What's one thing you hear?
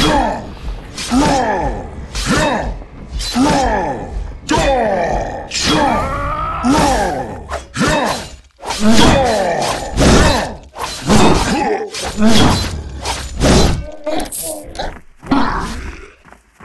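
Blades whoosh and clang in a fight.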